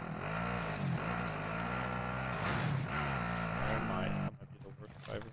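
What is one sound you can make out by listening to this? An engine roars on an all-terrain quad.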